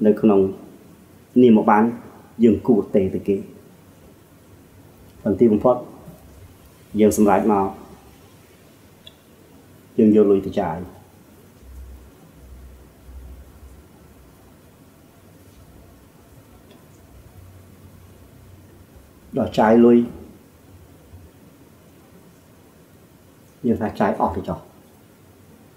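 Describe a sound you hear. A middle-aged man speaks calmly into a microphone in short phrases with long pauses.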